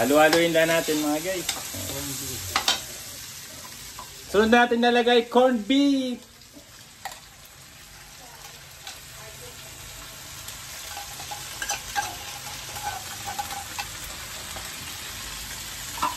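A metal spatula scrapes a pan.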